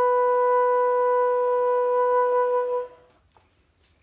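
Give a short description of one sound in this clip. A bassoon plays a long, steady held note close by.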